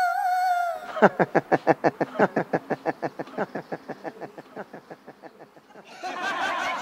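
A man sobs loudly.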